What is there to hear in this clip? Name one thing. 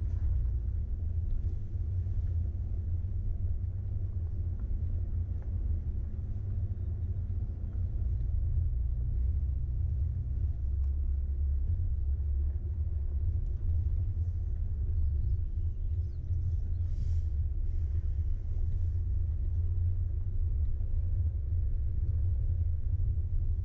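A vehicle engine rumbles low and steady while driving slowly.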